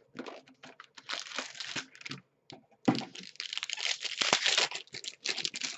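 Plastic wrapping crinkles loudly as hands tear open a pack.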